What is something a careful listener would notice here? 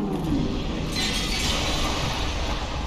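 Crystal shards shatter and tinkle.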